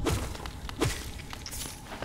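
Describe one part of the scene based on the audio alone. A small creature bursts with a wet splatter.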